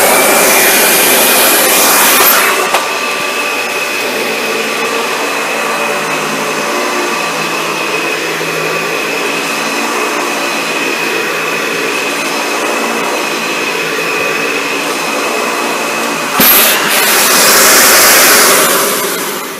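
A vacuum cleaner motor roars steadily with a high whine.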